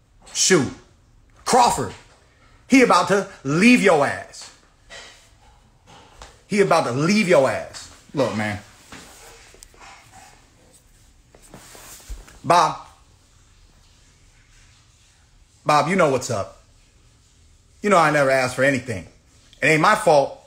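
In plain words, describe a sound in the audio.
A young man speaks with animation, close to a microphone, in bursts with pauses.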